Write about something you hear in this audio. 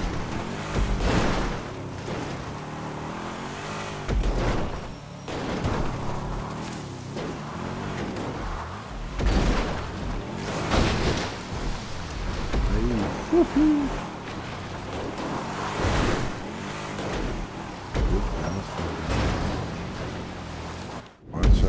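A car engine revs as a vehicle climbs over rough ground.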